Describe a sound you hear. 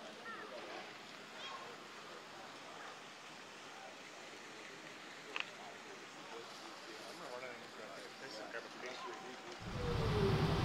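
Men talk casually nearby outdoors.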